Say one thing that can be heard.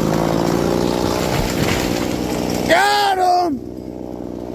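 A tree cracks and crashes to the ground.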